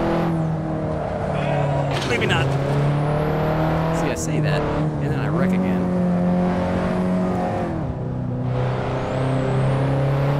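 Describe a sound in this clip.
A car engine hums steadily and rises and falls in pitch as it shifts gears.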